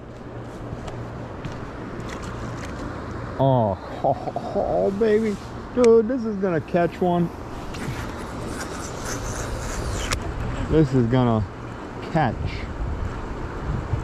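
A fishing reel whirs as the line is wound in.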